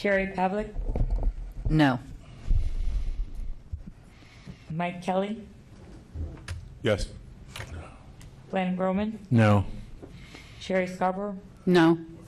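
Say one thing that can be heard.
A man speaks calmly through a microphone, with short pauses.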